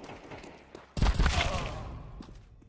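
Gunshots crack loudly, close by.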